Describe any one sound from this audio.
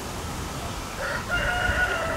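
A steam locomotive whistles in the distance.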